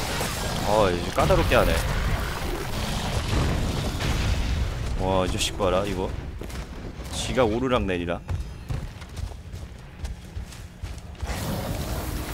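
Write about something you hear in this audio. Deep rumbling and crashing game sound effects play throughout.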